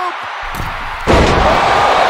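A wrestler's body slams down onto a wrestling ring's mat with a heavy thud.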